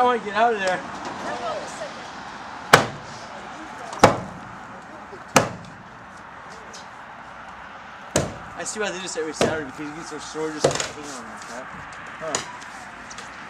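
A man strikes wooden posts with loud, sharp knocks.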